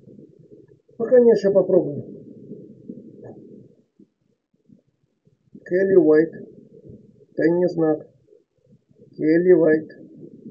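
Short garbled voice fragments burst from a small radio speaker.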